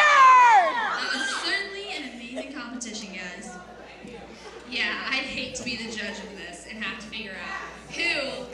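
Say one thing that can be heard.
An audience cheers and claps.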